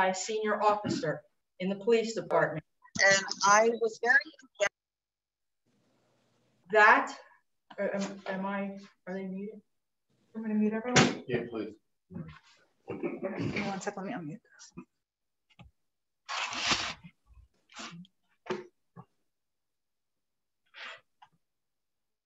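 A middle-aged woman reads aloud calmly through a microphone, with a slight room echo.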